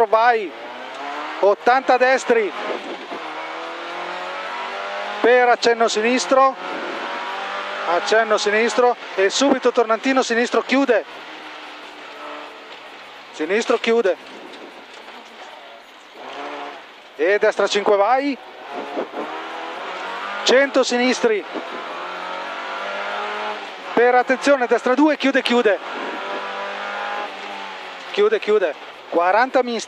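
A rally car engine revs hard and changes pitch through gear shifts.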